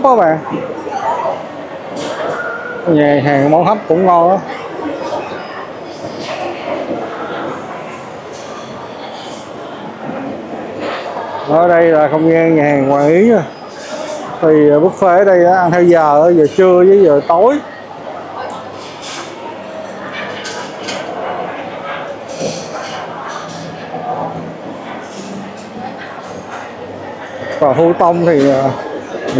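A crowd murmurs and chatters in the background of a large echoing hall.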